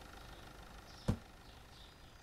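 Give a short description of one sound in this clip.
A heavy counter thuds down onto a wooden floor.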